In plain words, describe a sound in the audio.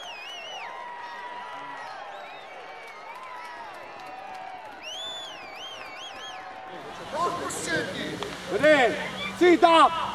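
Young players shout to each other across an outdoor field.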